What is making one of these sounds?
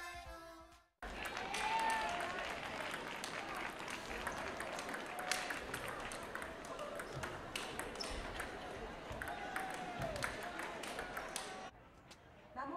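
Table tennis balls click faintly in a large echoing hall.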